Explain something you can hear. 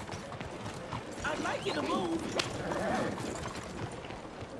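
A horse-drawn cart rolls past with hooves clopping.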